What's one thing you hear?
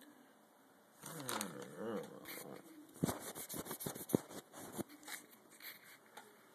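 Handling noise rustles and bumps close by as the recorder is moved about.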